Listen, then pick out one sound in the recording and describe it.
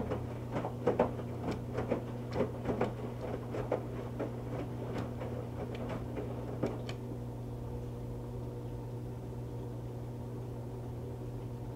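A washing machine drum hums steadily.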